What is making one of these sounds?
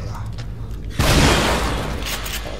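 A pistol fires a loud shot that echoes.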